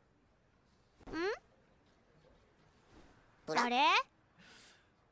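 A small cartoon creature babbles in a high, squeaky voice.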